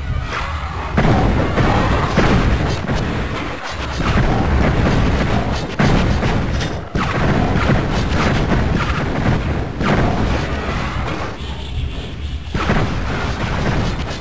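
Fireballs burst with loud booming blasts.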